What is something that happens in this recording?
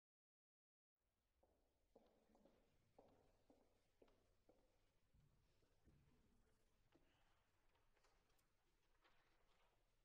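Musicians shuffle and knock faintly on a stage in a large hall.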